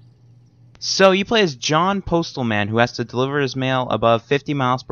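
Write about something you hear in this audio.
A man speaks calmly and close up.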